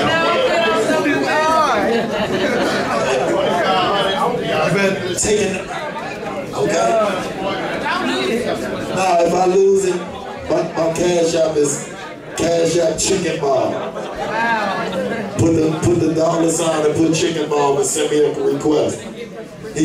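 A young man raps loudly into a microphone over a loudspeaker in an echoing room.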